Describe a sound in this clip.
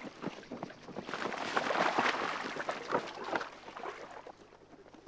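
Boots splash and stamp through shallow water.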